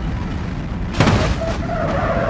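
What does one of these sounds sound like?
A car crashes into a barrier with a loud bang.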